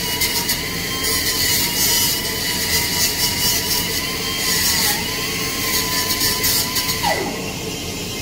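A welding torch crackles and hisses steadily, then stops.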